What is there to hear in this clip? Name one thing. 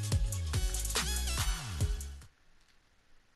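Upbeat electronic music plays, then cuts off abruptly.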